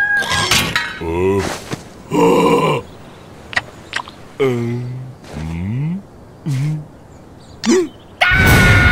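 A cartoon creature babbles and grunts in a squeaky voice.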